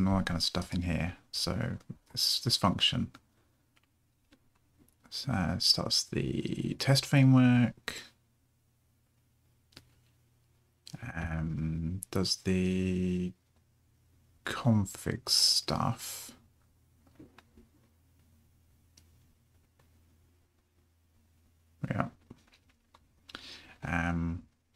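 A man talks calmly and close to a microphone, in bursts with pauses.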